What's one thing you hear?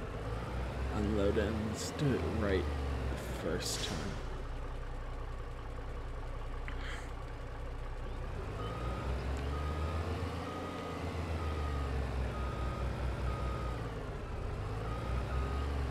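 Dirt pours out of a dump truck's bed.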